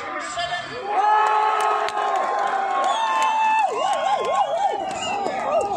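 Spectators shout loudly in excitement.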